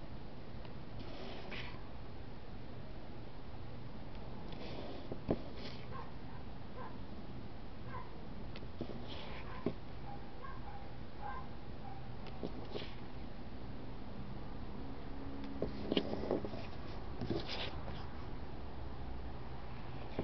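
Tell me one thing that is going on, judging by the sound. Paper stickers rustle and flap as a hand shuffles them.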